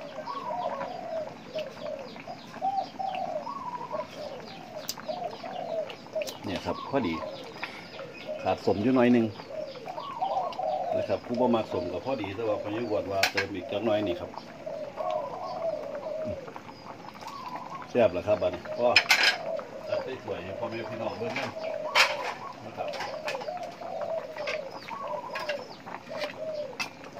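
Soup bubbles and simmers in a pot.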